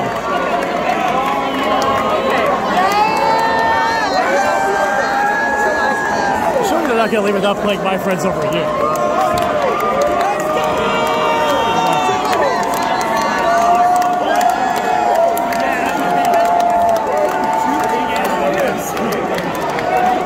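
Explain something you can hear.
Many voices sing along loudly together.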